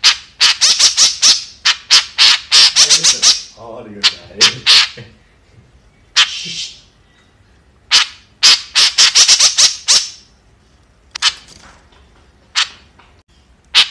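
A bird gives loud, harsh chattering calls in quick bursts.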